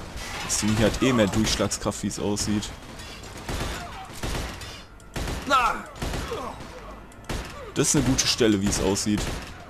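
Gunshots crack sharply in bursts.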